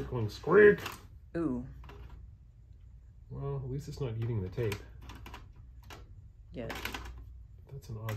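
A cassette deck door clicks open and shut.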